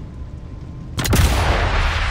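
A rifle fires a single sharp, loud shot.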